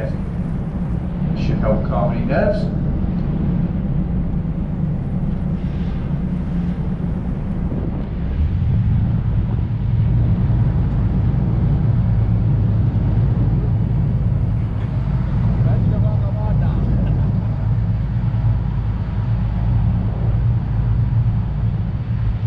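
Wind blows across the open deck.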